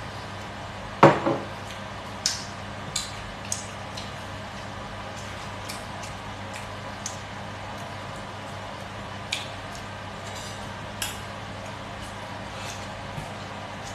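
A man smacks his lips and chews loudly close by.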